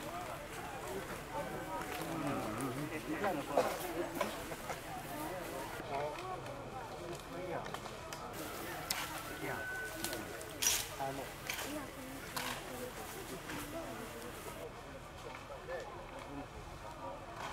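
Soldiers march in step on grass.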